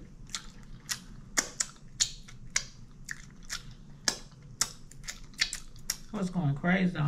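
A woman smacks her lips and licks her fingers close up.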